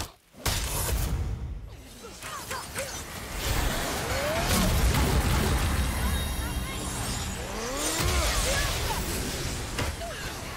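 Flames roar and sparks crackle.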